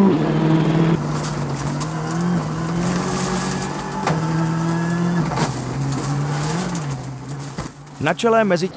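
A rally car engine drones steadily, heard from inside the car.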